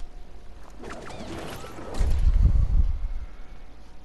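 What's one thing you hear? A video game hang glider snaps open.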